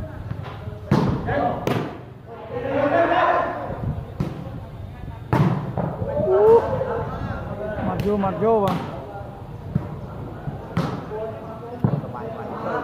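A volleyball is struck by hand with sharp slaps.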